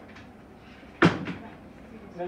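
A microphone thumps as it is handled.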